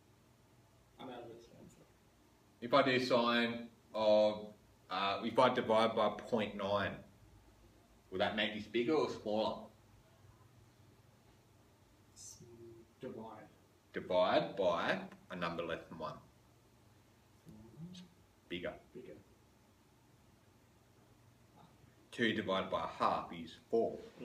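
A man explains something calmly.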